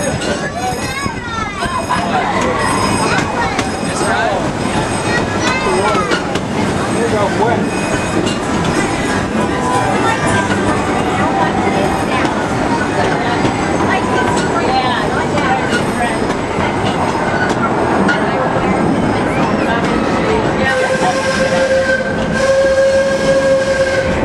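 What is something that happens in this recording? A crowd of children and adults chatters and calls out nearby.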